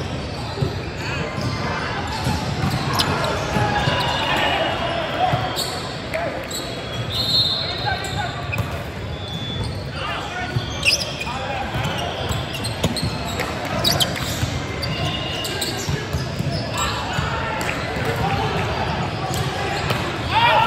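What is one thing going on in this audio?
Young men call out and shout to each other across a large hall.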